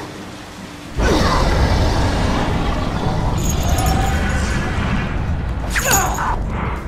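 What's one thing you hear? A loud rushing roar rises and fills the space.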